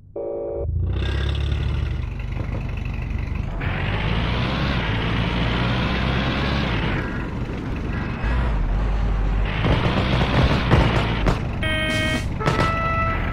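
A military jeep engine drives over rough ground.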